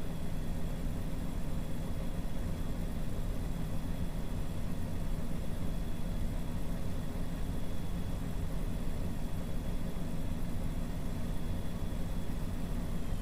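Tyres roll steadily over the road.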